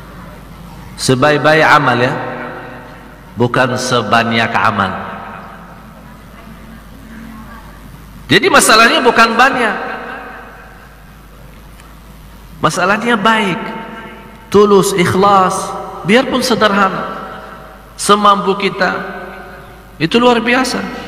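A man speaks into a microphone in bursts, with pauses between phrases, his voice echoing.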